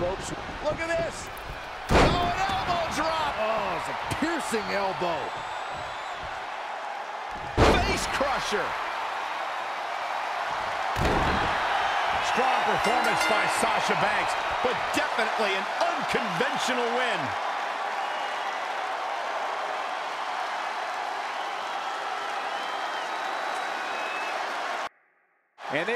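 A large crowd cheers and shouts in a big arena.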